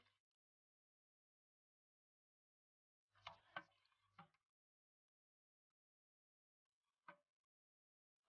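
A ladle stirs liquid in a metal pot.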